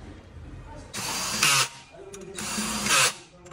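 A cordless drill-driver whirs in short bursts, driving bolts.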